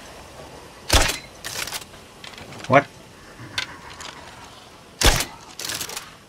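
Gunshots crack sharply.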